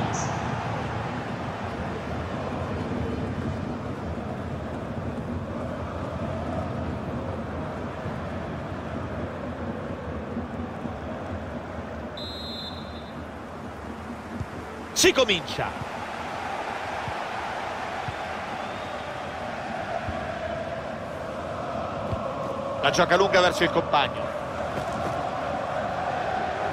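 A large stadium crowd roars and chants steadily throughout.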